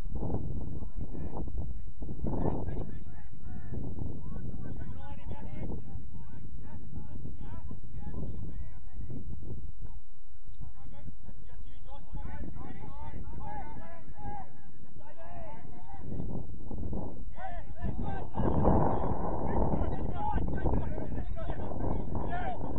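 Young players shout to each other in the distance.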